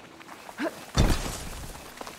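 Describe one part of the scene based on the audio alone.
A body lands with a heavy thud on dirt during a roll.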